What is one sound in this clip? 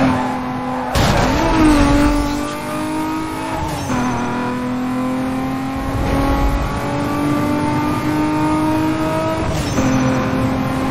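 A sports car engine in a racing game roars at full throttle, climbing in pitch and dropping at each gear change.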